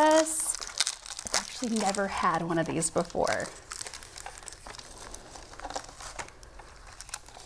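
Cardboard crinkles and rustles in hands.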